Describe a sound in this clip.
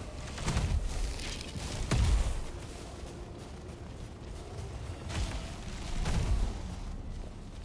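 Heavy magical blasts boom and thud.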